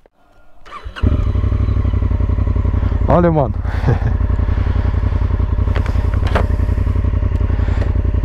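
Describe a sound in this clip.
A motorcycle engine starts and idles with a steady low throb.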